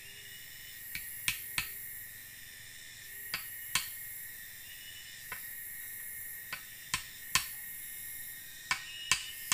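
Wood knocks sharply against wood close by, a few times.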